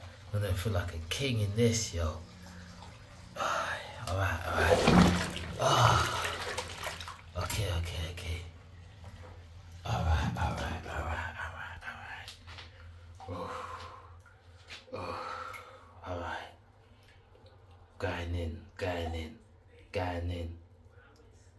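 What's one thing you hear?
Foamy water swirls and bubbles up close.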